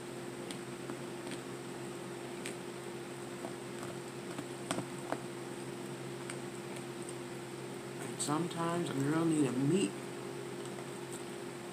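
A fork clicks against a plastic container.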